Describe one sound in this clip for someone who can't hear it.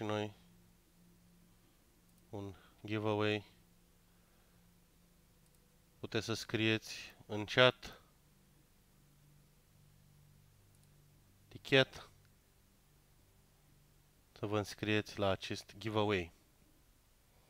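A man talks casually into a close microphone, in short bursts with pauses.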